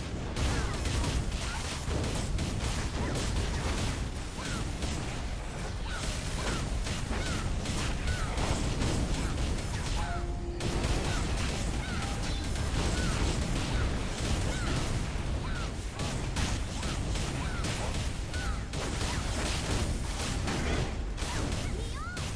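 Weapons clash and spells burst in a busy game battle.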